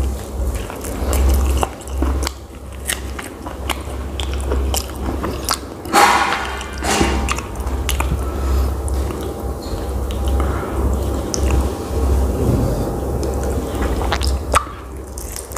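A man chews food noisily up close.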